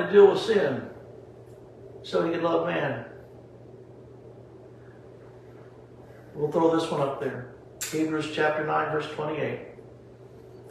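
An elderly man speaks calmly in short phrases, with pauses, close by.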